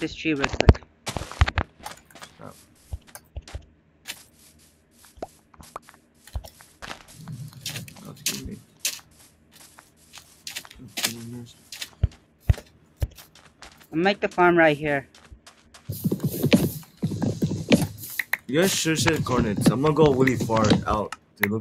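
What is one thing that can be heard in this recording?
Game footsteps patter on grass.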